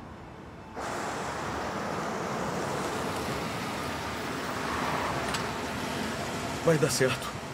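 A car engine hums as the car drives along a street.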